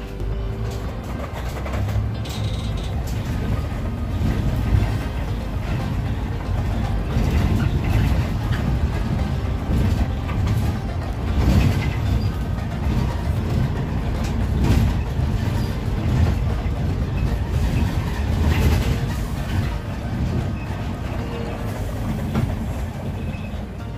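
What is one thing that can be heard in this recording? A bus engine rumbles steadily as the bus drives along.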